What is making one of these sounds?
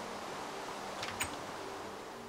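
A wooden door clacks open.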